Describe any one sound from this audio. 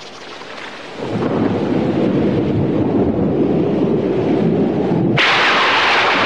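Thunder rumbles low and long.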